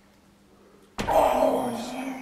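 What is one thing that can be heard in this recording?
Weight plates clank loudly.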